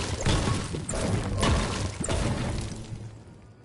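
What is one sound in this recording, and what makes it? A pickaxe strikes wood in quick, regular blows.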